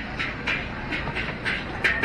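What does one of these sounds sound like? A suitcase's wheels roll along the ground.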